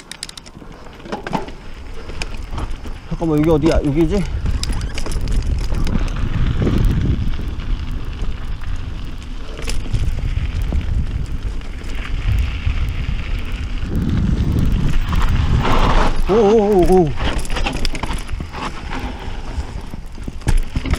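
Bicycle tyres rumble over a rough dirt trail.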